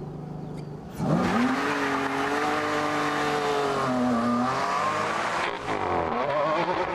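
A sports car engine roars as the car accelerates hard through the gears.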